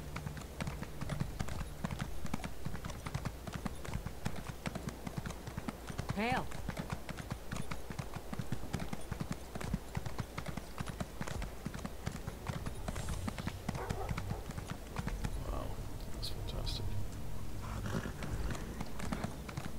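Horse hooves clop rapidly on stone paving.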